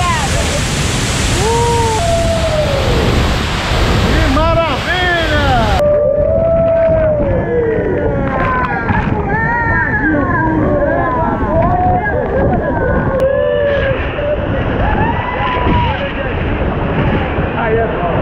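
A waterfall roars loudly nearby.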